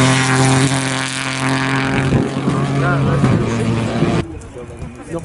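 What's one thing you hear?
A rally car engine roars steadily as the car speeds past.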